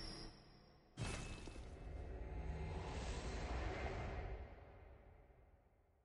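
A low magical whoosh swells and slowly fades.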